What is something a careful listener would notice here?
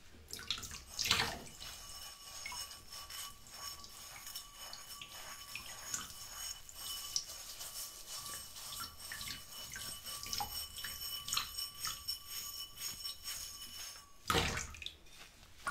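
Glass clinks against glass.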